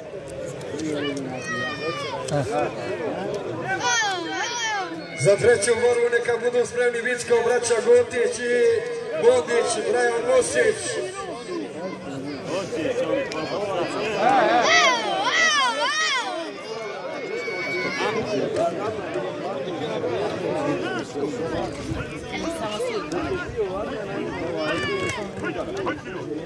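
A crowd of men and women chatters and shouts outdoors.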